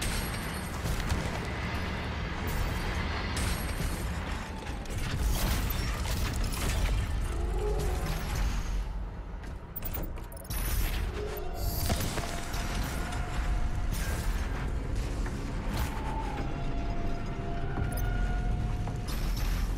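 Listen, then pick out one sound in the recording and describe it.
Heavy footsteps thud quickly across metal floors.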